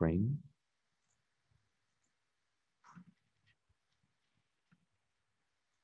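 A man speaks briefly over an online call, with pauses.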